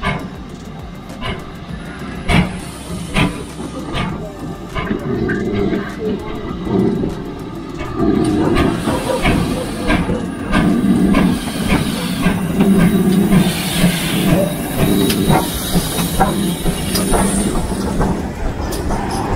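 A steam locomotive chuffs as it approaches and grows louder.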